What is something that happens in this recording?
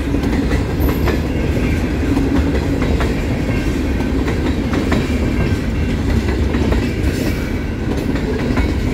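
Train wheels clack and squeal on the rails.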